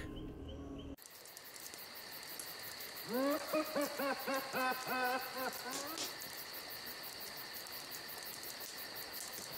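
A fire crackles and roars softly.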